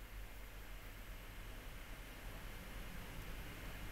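A cat's paws rustle through dry grass.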